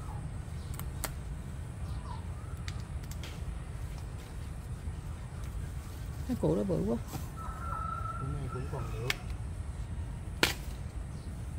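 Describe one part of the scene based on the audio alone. A root snaps with a sharp crack.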